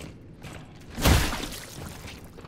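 A heavy stomp lands with a wet squelch.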